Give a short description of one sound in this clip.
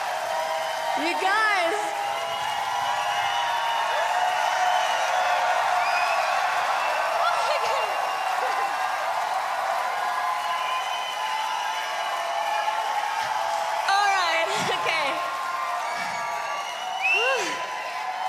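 A woman shouts excitedly into a microphone over loudspeakers.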